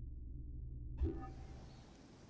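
A whoosh sounds as a menu closes.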